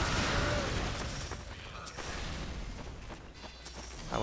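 An explosion bursts and debris clatters.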